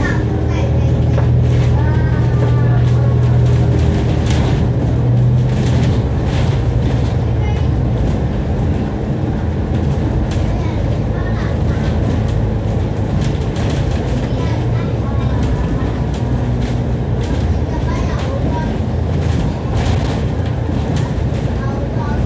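A diesel double-decker bus engine drones from inside the bus as it drives along.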